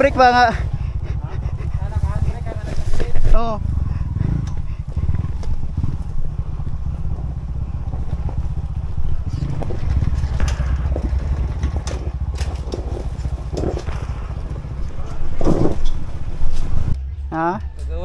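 Tyres roll and crunch over a rough dirt trail.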